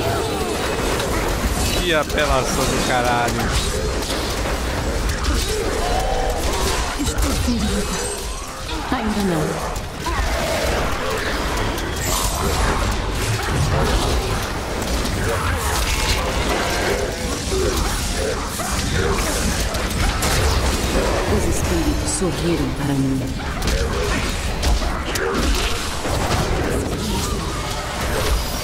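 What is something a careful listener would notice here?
Magic blasts crackle and boom in rapid succession.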